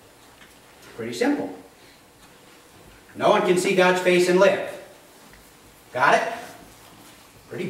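A man speaks calmly through a microphone in a room with a slight echo, pausing between phrases.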